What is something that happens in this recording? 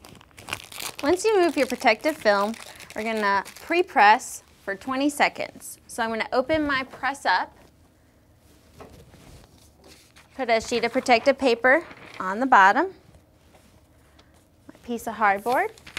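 A woman speaks calmly and clearly into a clip-on microphone.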